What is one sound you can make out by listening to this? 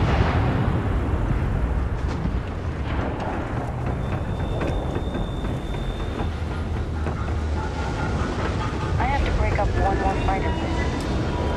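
Heavy boots run with quick footsteps on metal walkways.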